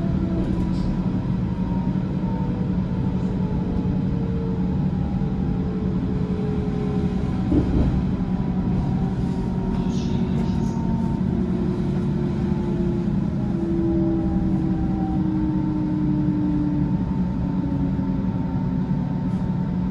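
Train wheels squeal with long, drawn-out tones as the train slows.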